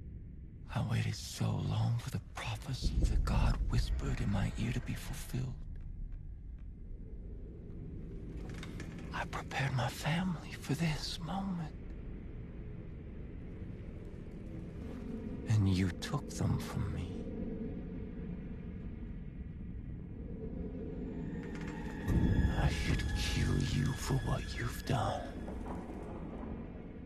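A man speaks slowly and menacingly, close by.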